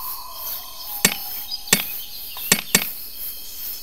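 A hammer knocks sharply on a metal ring a few times.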